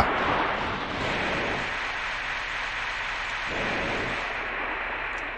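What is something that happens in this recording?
A jet thruster roars steadily over splashing water.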